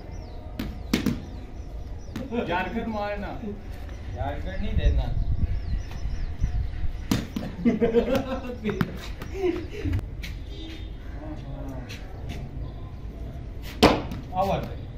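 A cricket ball is struck with a bat with a sharp crack.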